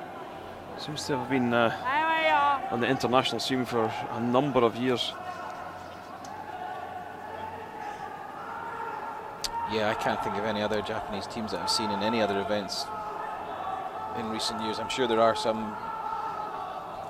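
Men shout short loud calls to each other in a large echoing hall.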